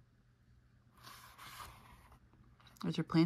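A page of a book turns with a soft papery rustle.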